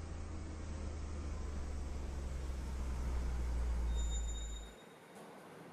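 A car engine idles with a low hum, then stops.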